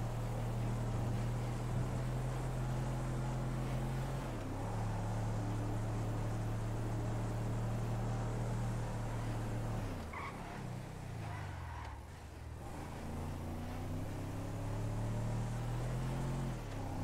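A truck engine hums steadily, dropping in pitch as it slows and rising again as it speeds up.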